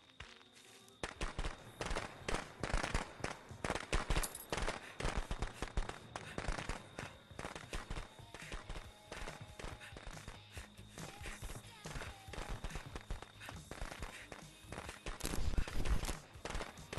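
Quick footsteps run over hard ground.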